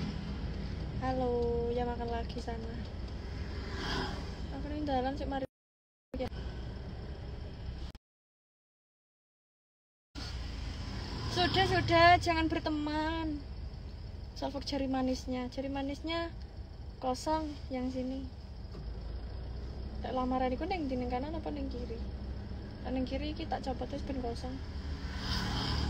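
A young woman talks close to a microphone with animation.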